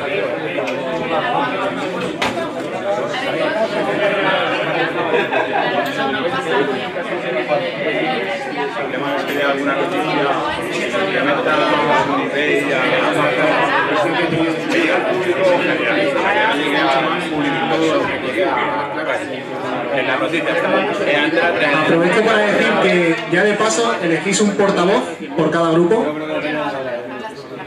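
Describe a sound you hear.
Many people chatter at once in a room.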